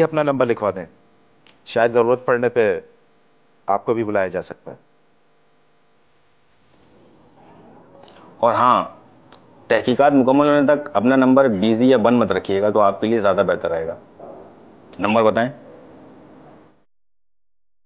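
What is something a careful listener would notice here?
A man speaks in a firm, animated voice close by.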